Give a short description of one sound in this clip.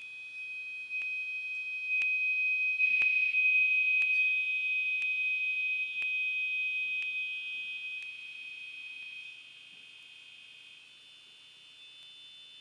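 A small handheld electronic device hums with steady, high, shimmering tones that swell and then slowly fade.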